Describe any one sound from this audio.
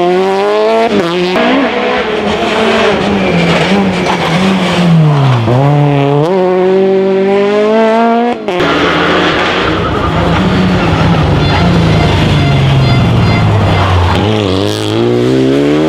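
A rally car engine drops sharply in pitch as gears change.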